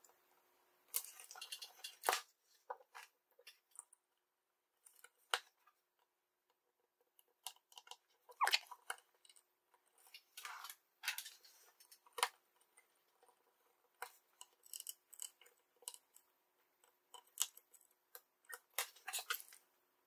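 Small tools tap and click against a circuit board.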